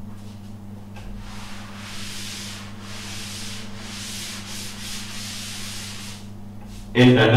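A cloth wipes across a chalkboard with a soft rubbing sound.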